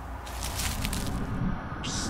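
Bare feet crunch on dry leaves.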